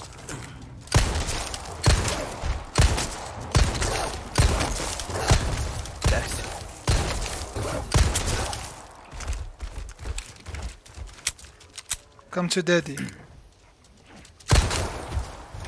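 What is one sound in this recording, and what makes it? Gunshots fire repeatedly.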